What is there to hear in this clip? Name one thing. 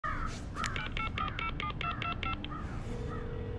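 A phone beeps in a quick series of short electronic tones.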